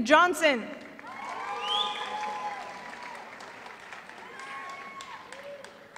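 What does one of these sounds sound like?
People cheer and applaud in a large hall.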